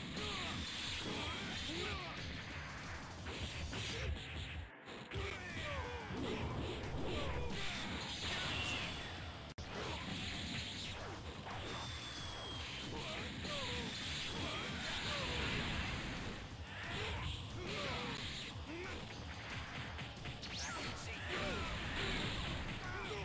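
Punches and energy blasts thump and crash in quick bursts.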